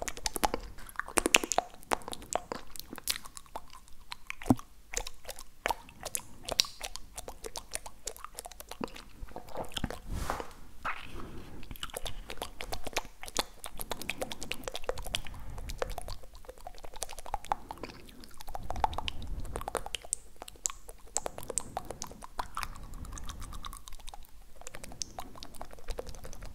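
Mouth clicks and smacks sound close to a microphone.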